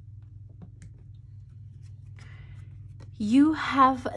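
A card slides onto a table.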